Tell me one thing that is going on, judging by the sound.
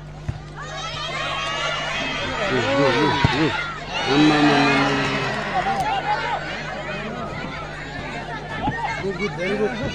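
A large crowd of spectators shouts and cheers loudly outdoors, rising and falling in excitement.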